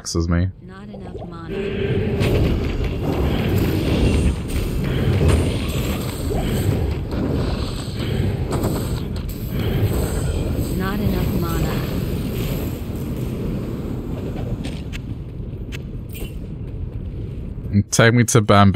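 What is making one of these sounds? Fire spells whoosh and crackle in quick bursts.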